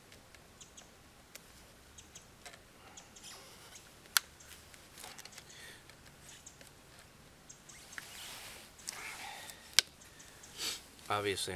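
A knife scrapes and cuts at a branch.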